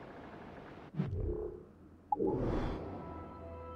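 A short menu chime sounds.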